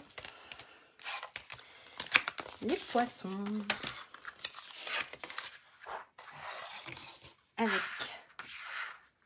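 Paper rustles and crinkles as sheets are handled.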